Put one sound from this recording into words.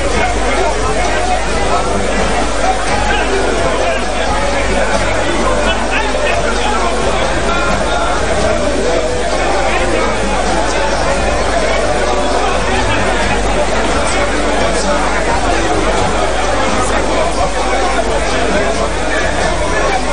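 A large crowd shouts and chants loudly in an echoing hall.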